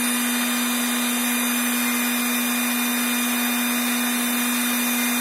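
A small electric motor hums with a steady high whine.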